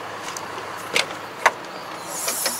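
Plastic knocks and clicks as a hand grabs a grab handle.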